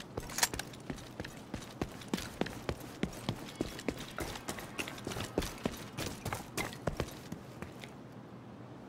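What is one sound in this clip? Boots run on pavement.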